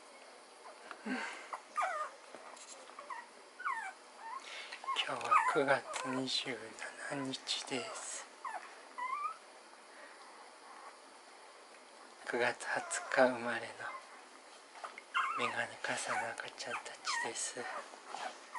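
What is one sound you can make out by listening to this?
Newborn puppies squeak and whimper softly close by.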